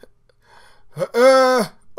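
A young man lets out a long, loud, drawn-out yell.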